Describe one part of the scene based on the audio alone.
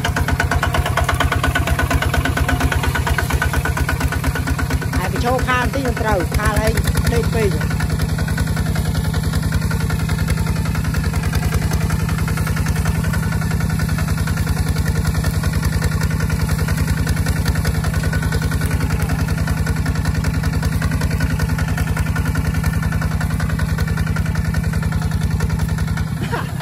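A small diesel engine chugs loudly and steadily close by.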